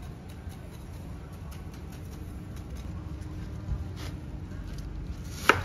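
Hands rustle lettuce leaves.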